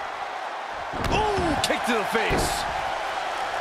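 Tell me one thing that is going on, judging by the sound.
A body slams hard onto a wrestling mat with a thud.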